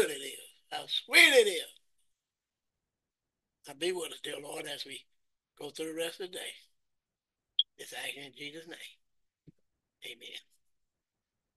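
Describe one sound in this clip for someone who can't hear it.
An elderly man speaks slowly and calmly through an online call, pausing between phrases.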